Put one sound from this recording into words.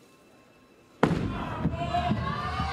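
A bowling ball thuds onto a wooden lane and rolls.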